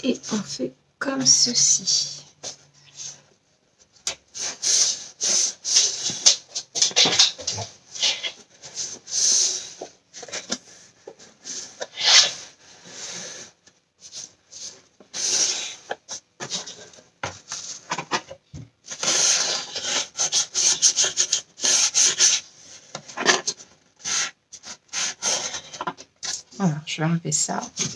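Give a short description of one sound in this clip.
Fingers rub and press paper strips onto cardboard.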